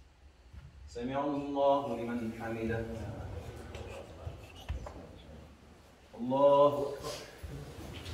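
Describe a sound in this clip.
A man chants loudly through a microphone and loudspeaker in an echoing room.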